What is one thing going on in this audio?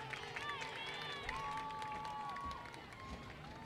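A group of young women cheer and shout loudly outdoors.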